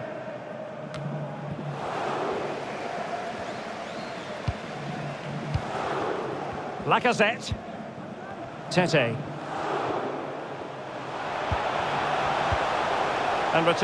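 A stadium crowd roars and murmurs steadily.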